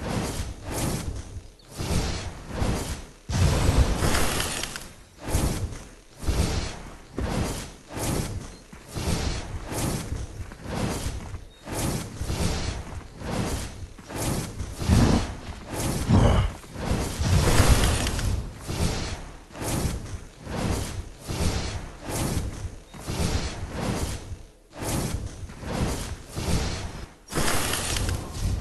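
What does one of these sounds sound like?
Magic spells burst and whoosh again and again.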